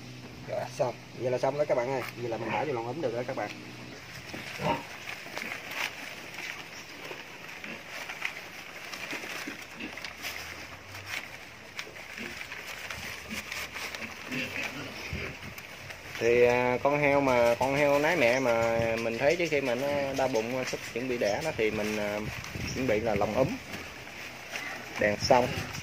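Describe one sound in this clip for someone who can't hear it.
Newborn piglets squeal loudly.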